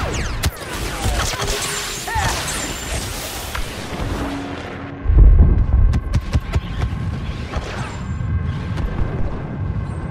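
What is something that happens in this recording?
Laser blasters fire in rapid, sharp bursts.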